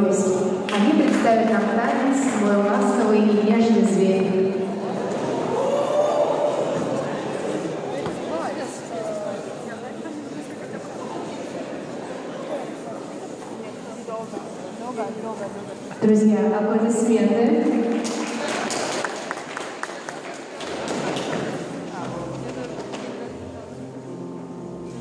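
A crowd of young people chatters nearby in a large echoing hall.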